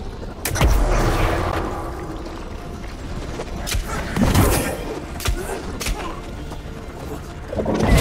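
Weapon blows land with heavy thuds and swishes in a fight.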